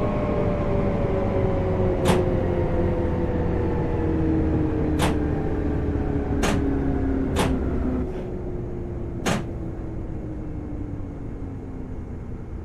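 Train wheels rumble steadily on the rails.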